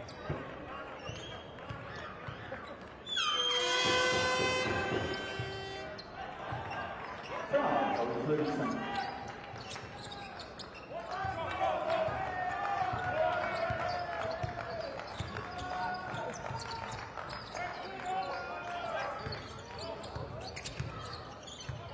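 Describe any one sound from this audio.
A large crowd cheers and murmurs in an echoing hall.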